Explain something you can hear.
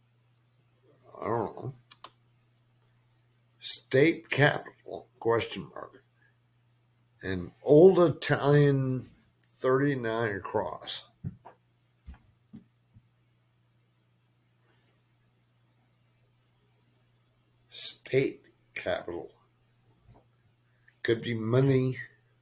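A young man talks calmly and close to a microphone, with pauses.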